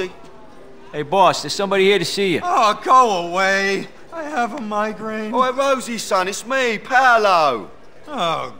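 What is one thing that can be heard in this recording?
A man answers in a firm voice.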